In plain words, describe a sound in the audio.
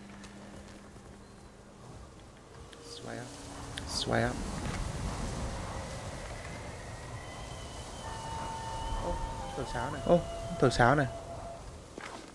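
Wind rushes through tall grass.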